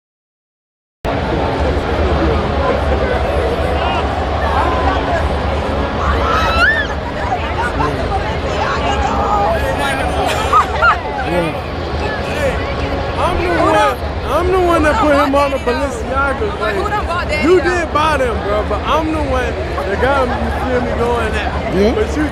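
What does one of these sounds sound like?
A crowd murmurs in a large echoing stadium.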